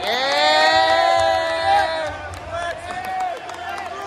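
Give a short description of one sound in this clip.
A man close by claps his hands.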